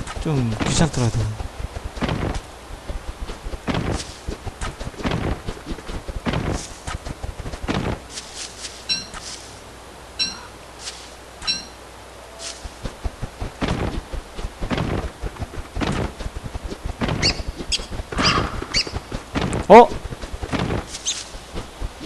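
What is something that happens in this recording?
Footsteps thud steadily on dry ground.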